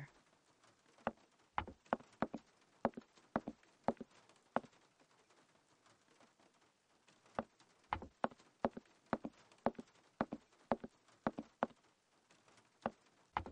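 Footsteps thud steadily on a wooden floor and stairs.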